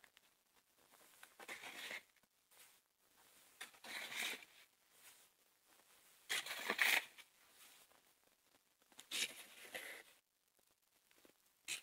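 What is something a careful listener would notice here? A snow shovel scrapes and swishes through snow in repeated strokes.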